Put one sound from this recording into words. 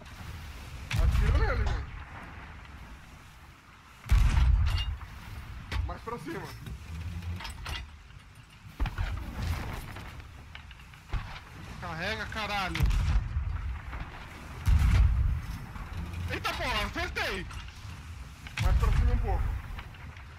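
Cannons fire with deep booms.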